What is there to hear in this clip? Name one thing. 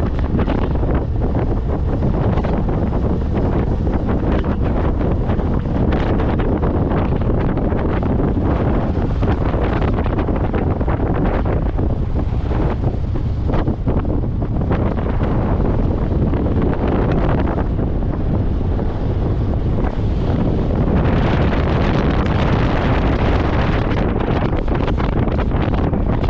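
Tyres rumble on a rough dirt road.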